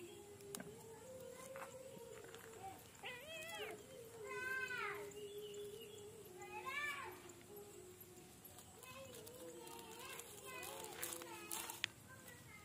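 Thin plastic tape crinkles softly as it is stretched and wrapped.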